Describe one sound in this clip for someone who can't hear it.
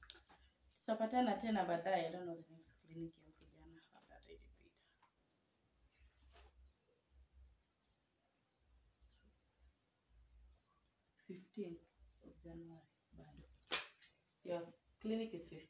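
A young woman reads aloud calmly, close by.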